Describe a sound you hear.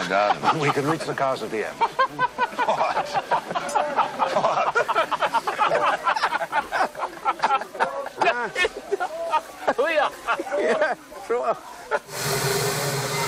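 Several men laugh heartily.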